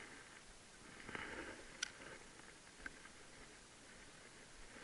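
A fishing reel clicks and ticks as the line is wound in.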